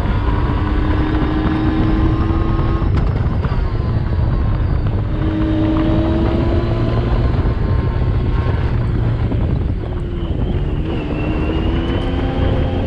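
A vehicle engine drones and revs up and down.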